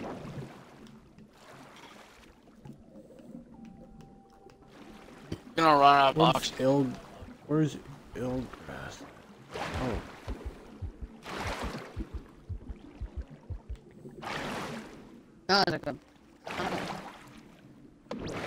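Water swishes in soft surges as a swimmer strokes underwater.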